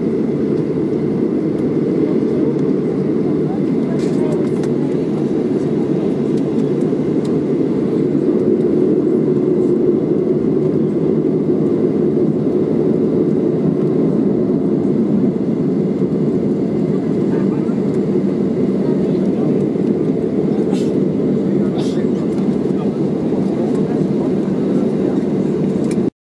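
An airliner's wheels rumble over the runway.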